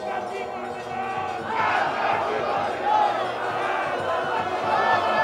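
A crowd of men shouts and chants loudly outdoors.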